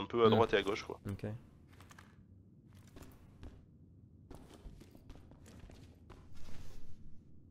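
Boots thud on hard stairs.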